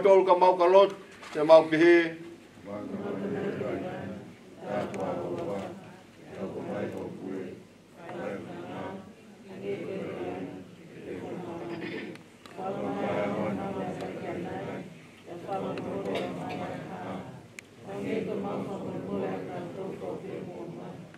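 A man speaks slowly and solemnly into a microphone.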